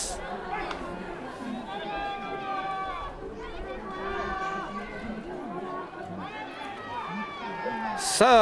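A crowd of spectators chants and cheers outdoors.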